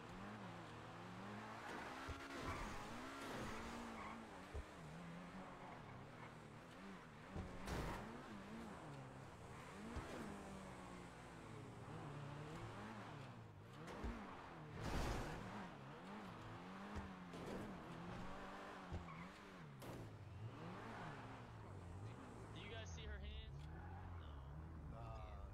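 A sports car engine revs up and down as the car accelerates and shifts gears.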